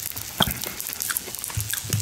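A knife scrapes and clicks against a plate.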